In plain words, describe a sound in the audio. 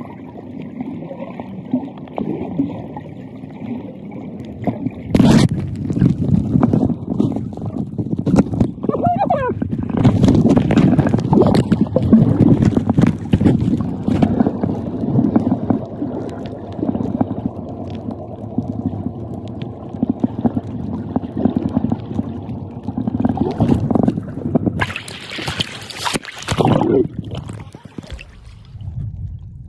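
Water gurgles and rumbles in muffled underwater sound.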